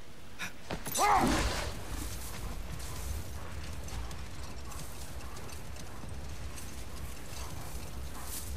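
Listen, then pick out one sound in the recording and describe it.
A sled rushes over snow.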